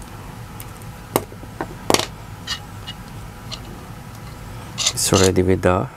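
Small plastic parts click and snap together.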